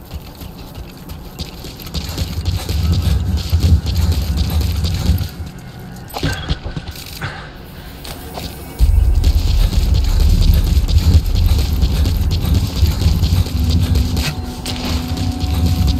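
Footsteps crunch quickly on dry ground and gravel.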